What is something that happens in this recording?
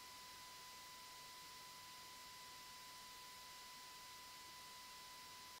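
Tape hiss plays steadily from a cassette deck.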